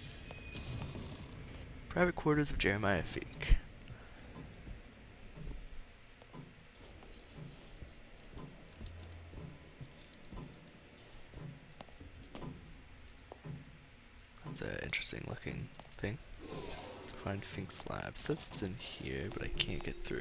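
Footsteps thud softly on a wooden floor.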